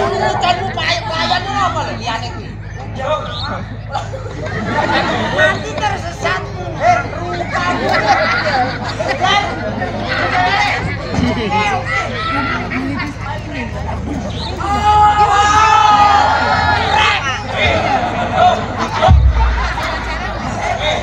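Men on a stage speak and shout with animation through loudspeakers.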